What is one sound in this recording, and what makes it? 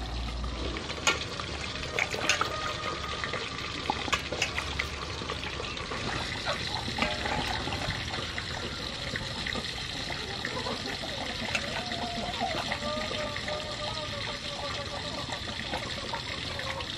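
Water splashes in a metal bowl as hands rub and wash food.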